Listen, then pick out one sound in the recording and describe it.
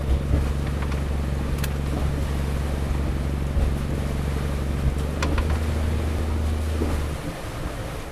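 A boat engine rumbles steadily, then cuts off.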